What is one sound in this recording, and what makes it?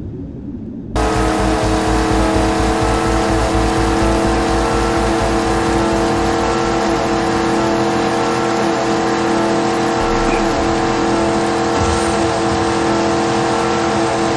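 A speedboat engine roars over splashing water.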